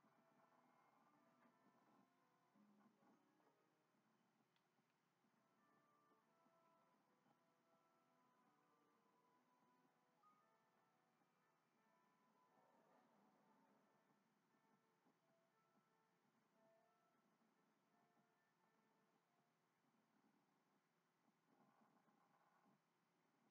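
Gentle game music plays through a television speaker.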